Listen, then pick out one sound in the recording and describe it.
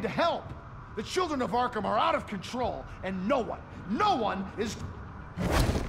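A middle-aged man speaks urgently and with alarm.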